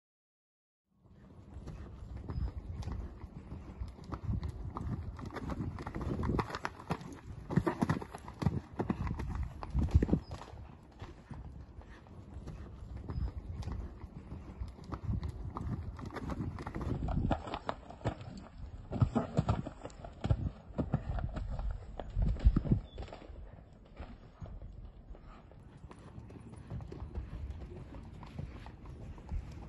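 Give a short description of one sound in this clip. A horse canters with hooves thudding on soft sand.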